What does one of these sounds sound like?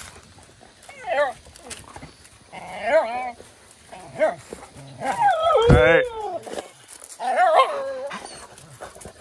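Dogs whine and yelp excitedly up close.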